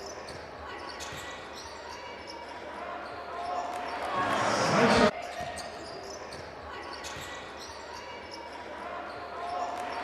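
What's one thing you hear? A crowd murmurs in a large echoing hall and swells into a loud cheer.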